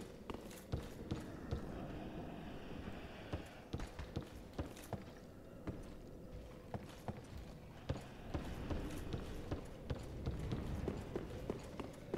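Armoured footsteps clank on stone at a steady pace.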